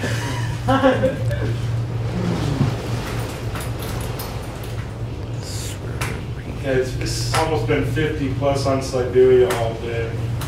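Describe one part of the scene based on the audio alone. A man talks nearby in a relaxed voice.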